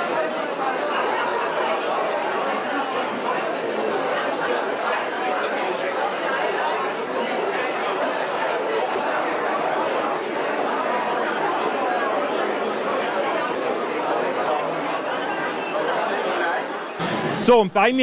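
A large crowd chatters loudly in a big room.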